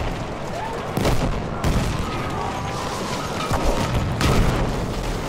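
Gunfire cracks in sharp bursts.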